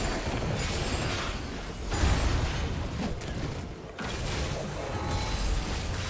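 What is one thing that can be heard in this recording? Video game spell effects whoosh and crackle during a fight.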